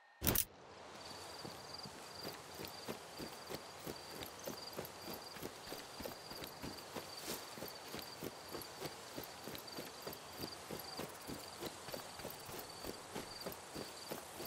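Footsteps crunch steadily over grass and dirt.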